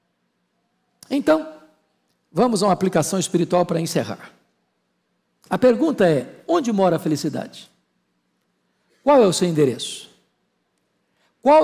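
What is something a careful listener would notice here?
An older man speaks slowly and with emphasis into a microphone, pausing between phrases.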